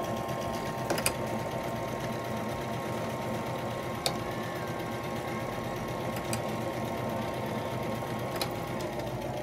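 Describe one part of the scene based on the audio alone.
A dial on a sewing machine clicks as it is turned.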